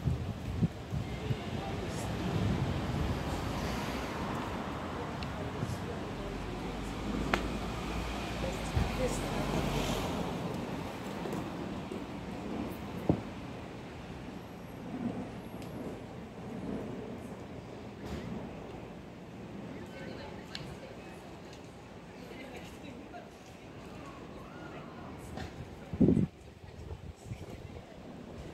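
A quiet city street hums in the background.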